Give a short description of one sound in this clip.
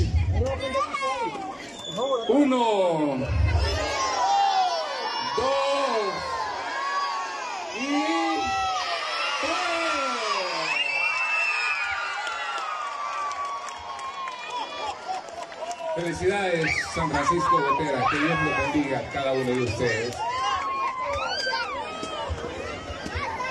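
A crowd of people sings together loudly.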